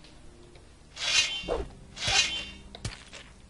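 A sword slides from its sheath with a metallic swish.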